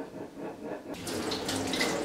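Water runs from a tap and splashes into a sink.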